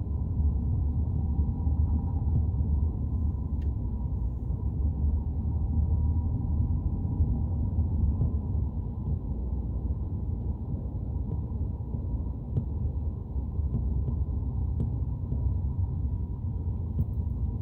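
A vehicle's engine rumbles low and steady from inside as it drives along.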